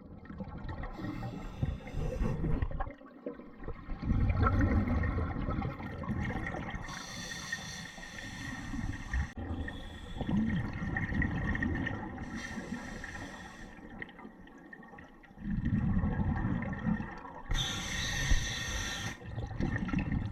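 Bubbles from a diver's breathing gear rush and gurgle in repeated bursts, heard underwater.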